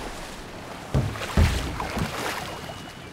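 Wooden boats bump together with dull knocks.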